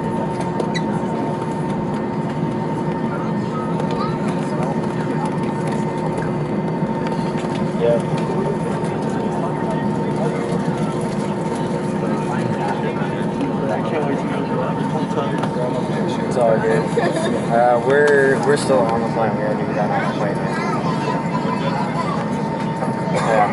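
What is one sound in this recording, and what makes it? Jet engines hum steadily as an airliner taxis, heard from inside the cabin.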